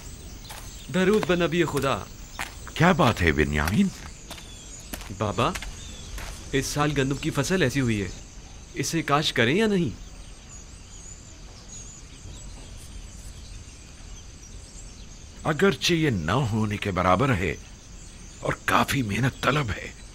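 An elderly man speaks earnestly, in short phrases with pauses.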